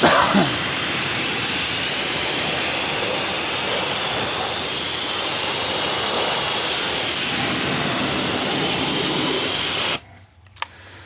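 A pressure washer sprays water with a loud steady hiss.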